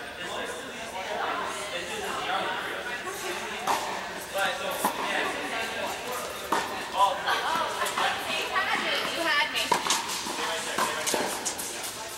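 A tennis ball is struck with a racket in a large echoing hall.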